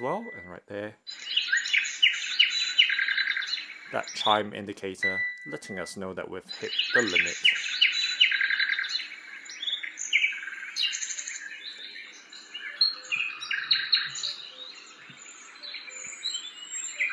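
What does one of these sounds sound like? A small speaker plays chirping birdsong.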